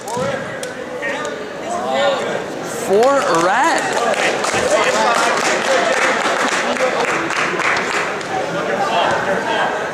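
Men and boys shout and cheer from close by.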